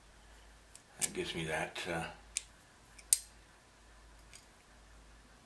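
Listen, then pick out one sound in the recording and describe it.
Metal tools click and clink against each other.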